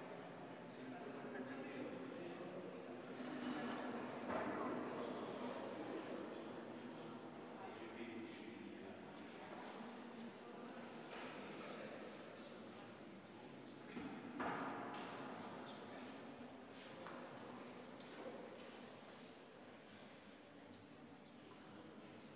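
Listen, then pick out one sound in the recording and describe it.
Several adults murmur and chat quietly at a distance in a large echoing hall.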